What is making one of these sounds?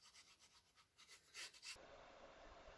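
A glue stick rubs against paper.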